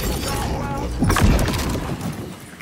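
A blast booms and shatters.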